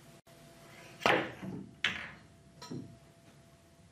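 Billiard balls clack together and thud against a cushion.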